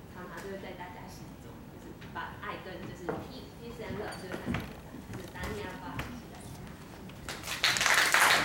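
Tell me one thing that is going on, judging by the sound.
A young woman speaks calmly into a microphone in a large echoing hall.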